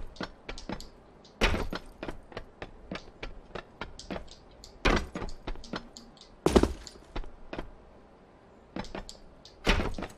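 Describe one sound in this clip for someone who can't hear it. Footsteps clank on metal train roofs in a video game.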